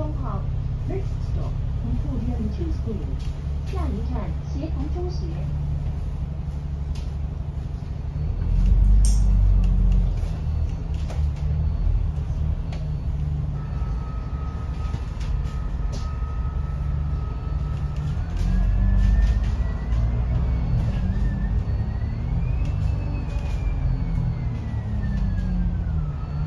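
A bus engine rumbles low and steady throughout.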